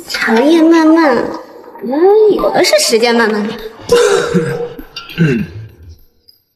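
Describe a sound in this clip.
A young woman speaks playfully and close by.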